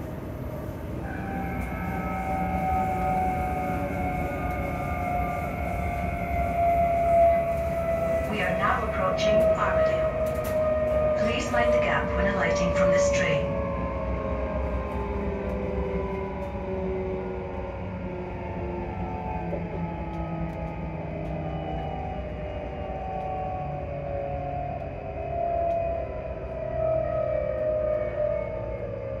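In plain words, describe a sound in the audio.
A train's motor whines with a slowly falling pitch.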